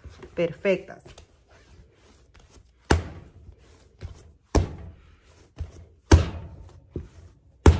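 Dough is slapped and pressed against a countertop by hand.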